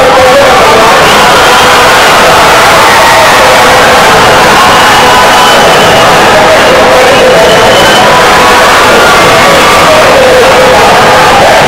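Loud music plays through loudspeakers.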